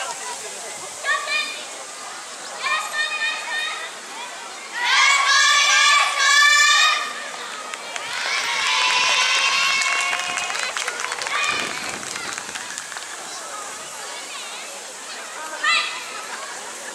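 A group of young women shout and chant together in unison, heard outdoors.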